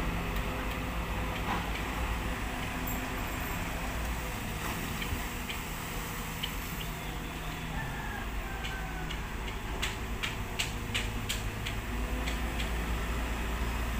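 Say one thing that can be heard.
A diesel engine rumbles steadily.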